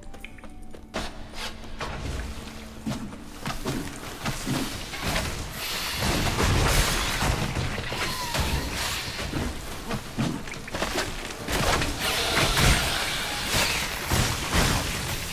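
A sword swishes and strikes a creature.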